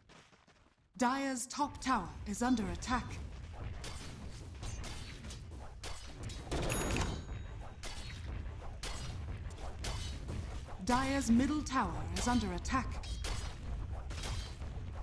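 Video game combat effects crackle and clash with magical bursts.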